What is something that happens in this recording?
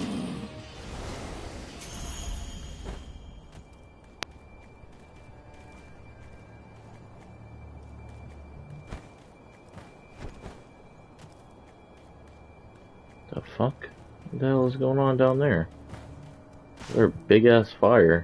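Footsteps tread softly over dirt and grass.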